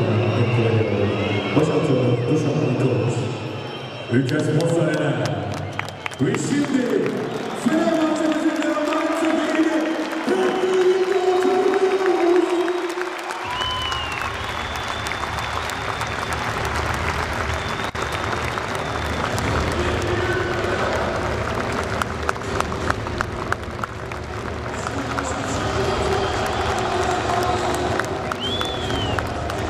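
A large crowd cheers and chants in a big echoing hall.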